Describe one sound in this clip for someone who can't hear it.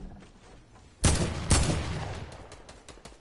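Loud gunshots blast with a ringing echo.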